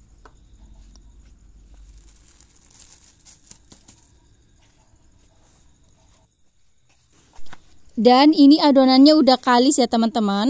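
Hands squish and knead soft dough in a plastic bowl.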